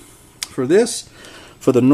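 Fingers handle a small circuit board with faint clicks.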